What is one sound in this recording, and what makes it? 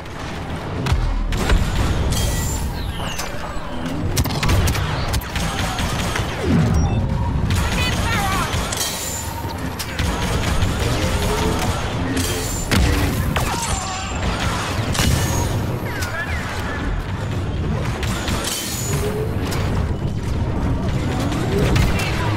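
Blaster shots fire in rapid bursts with loud impacts.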